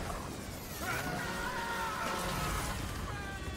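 A chainsaw revs and grinds through flesh.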